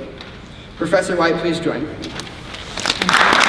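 A young man speaks into a microphone in a large echoing hall.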